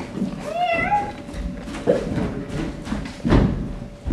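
A performer's feet thump across a wooden stage.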